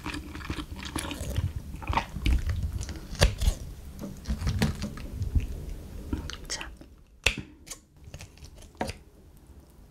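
Scissors snip through soft food close up.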